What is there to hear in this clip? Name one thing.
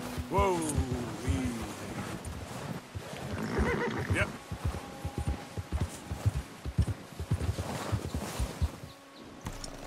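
Hooves thud and crunch through deep snow.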